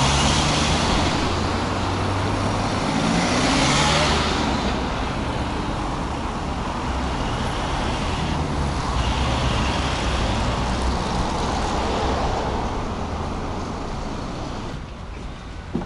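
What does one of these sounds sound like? Traffic drives past on a street outdoors.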